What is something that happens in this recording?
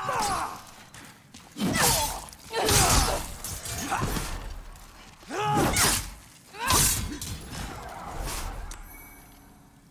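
Swords clash and strike loudly in a fight.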